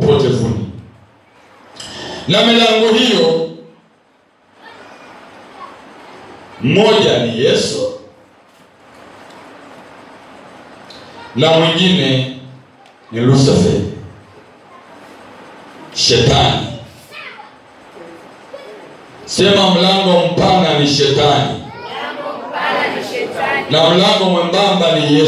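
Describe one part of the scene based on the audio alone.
A middle-aged man speaks calmly and close to a microphone, in short bursts with pauses.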